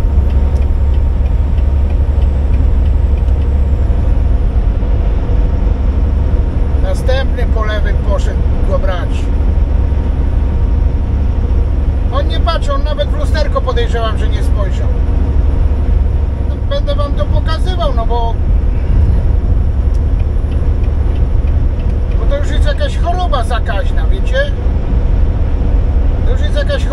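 Tyres rumble steadily on a paved road.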